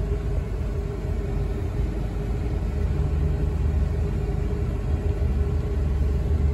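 Tyres rumble softly on the road.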